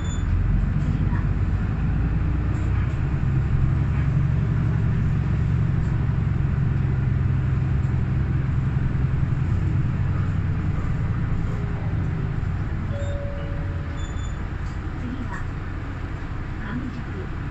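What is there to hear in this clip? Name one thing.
A vehicle's engine hums steadily from inside as it drives along a road.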